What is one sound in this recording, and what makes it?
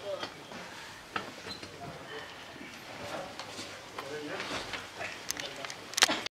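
Objects knock and bump on a table as people move about.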